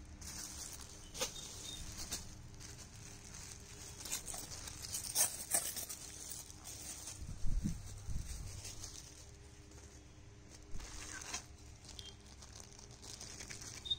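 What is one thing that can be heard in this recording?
Plastic packaging crinkles under handling.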